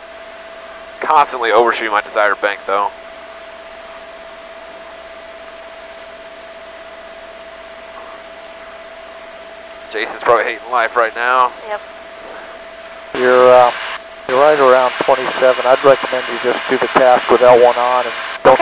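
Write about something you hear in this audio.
A man speaks calmly over an intercom.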